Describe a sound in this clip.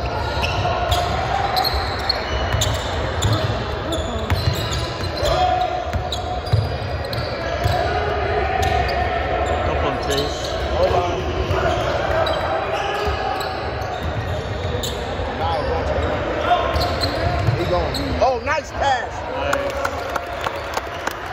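A crowd of young people chatter and shout in a large echoing gym.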